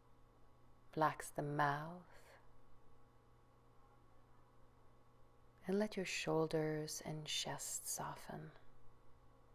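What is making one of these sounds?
A woman speaks calmly and softly, close by.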